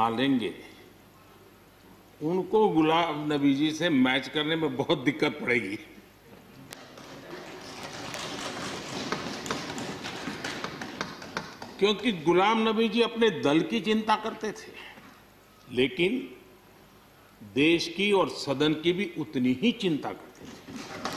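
An elderly man speaks with feeling into a microphone in a large echoing hall.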